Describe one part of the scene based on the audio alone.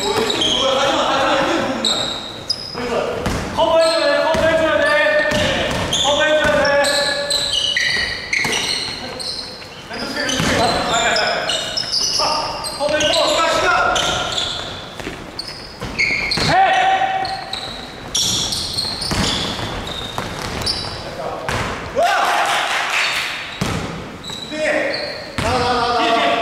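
A basketball bounces on a wooden floor with thuds.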